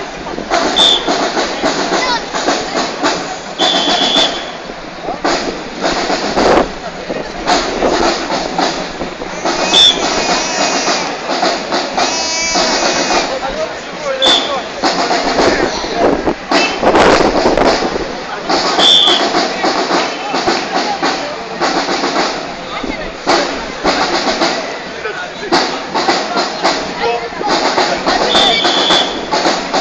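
Drums beat in a lively rhythm as a parade passes outdoors.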